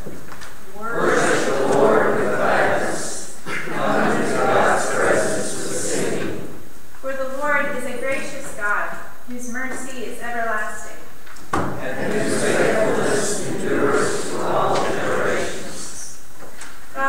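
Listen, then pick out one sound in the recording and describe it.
A congregation recites together in a low murmur.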